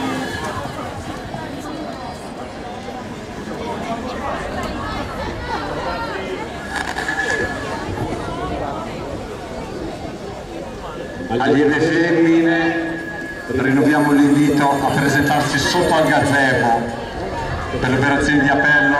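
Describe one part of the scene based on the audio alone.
Inline skate wheels whir and scrape on a smooth track.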